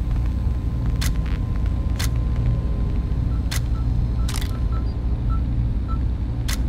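A short chime sounds as fuses light up one after another.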